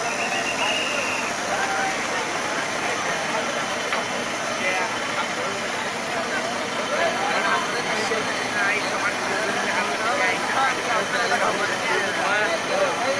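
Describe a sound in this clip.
A crowd of men shout and chatter outdoors.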